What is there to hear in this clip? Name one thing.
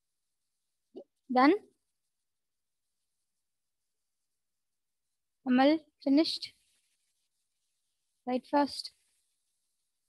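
A young woman speaks briefly into a headset microphone, in short calm phrases.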